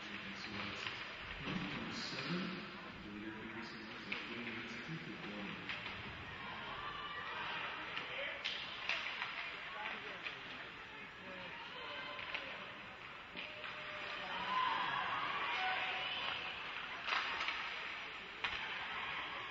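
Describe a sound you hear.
Hockey sticks clack against a puck now and then.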